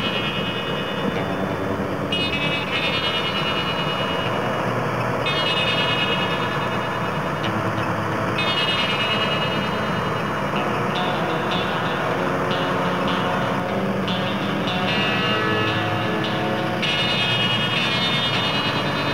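A combine harvester engine rumbles steadily nearby.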